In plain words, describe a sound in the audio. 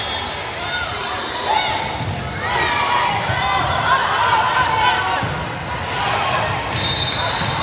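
Sneakers squeak on the hardwood floor.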